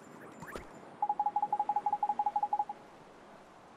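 Quick, even electronic beeps chatter rapidly for a moment.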